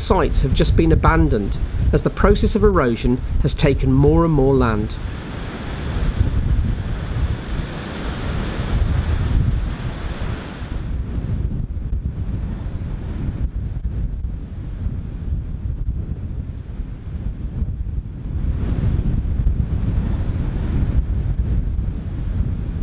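Waves crash and roll onto a beach.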